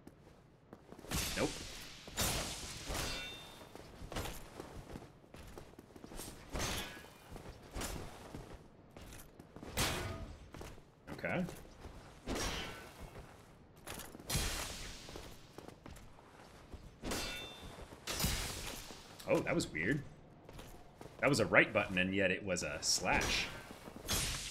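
Swords clash and strike with sharp metallic blows, again and again.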